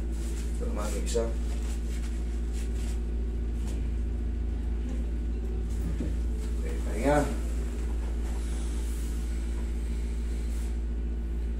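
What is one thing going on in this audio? An air conditioner hums steadily.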